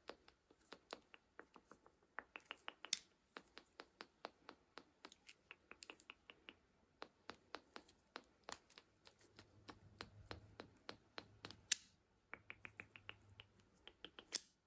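Wooden cube segments of a toy click and clack as they are twisted, close by.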